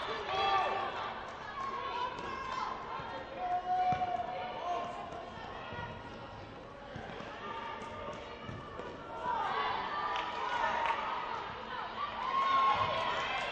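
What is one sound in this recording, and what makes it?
Young women shout and call out across a large echoing gym.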